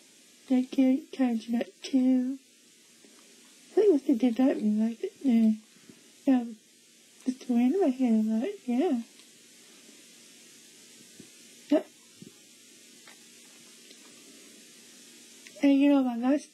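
A young woman speaks with excitement close by.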